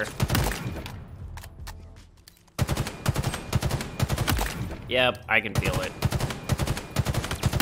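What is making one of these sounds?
A rifle fires rapid shots in quick bursts.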